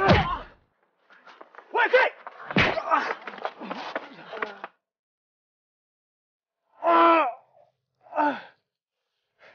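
A man grunts and groans in pain close by.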